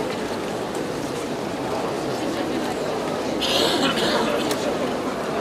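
A crowd of people murmurs and chatters close by.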